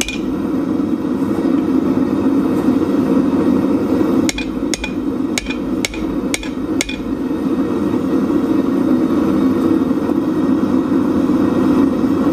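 A gas forge roars steadily.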